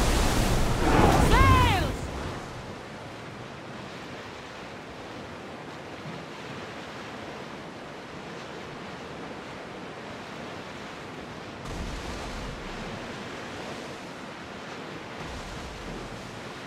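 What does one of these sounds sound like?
Waves splash and rush steadily against a ship's hull.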